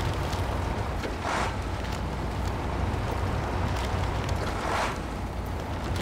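A heavy truck engine rumbles low and steady.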